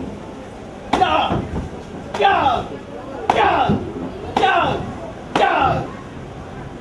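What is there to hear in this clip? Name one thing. Men shout sharply as they spar.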